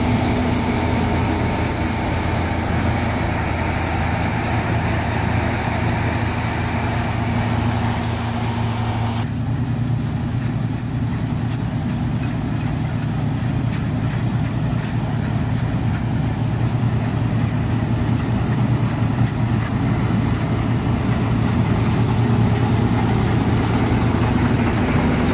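A combine harvester's diesel engine drones under load.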